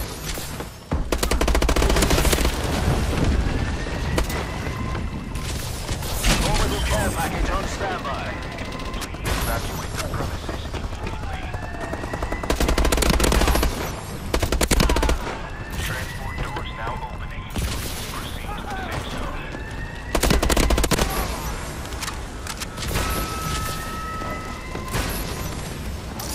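Rapid gunfire bursts out in loud volleys.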